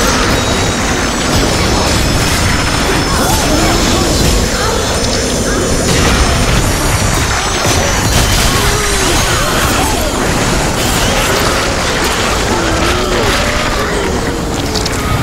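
Magic blasts crackle and roar.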